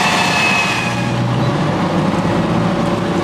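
An armoured carrier's engine rumbles low as it drives past.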